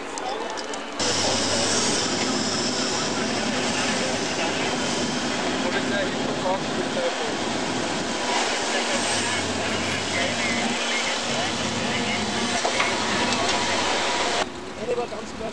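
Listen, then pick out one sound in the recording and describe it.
An excavator engine rumbles.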